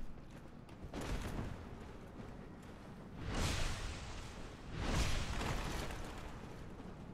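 Heavy weapons strike with loud whooshing blows.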